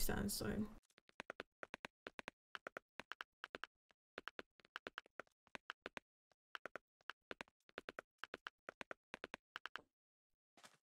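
Blocks are placed with quick, soft repeated clicks.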